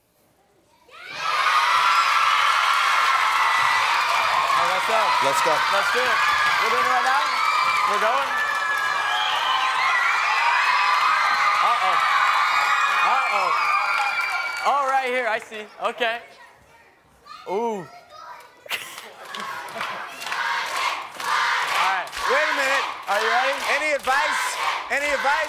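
A crowd of young girls claps.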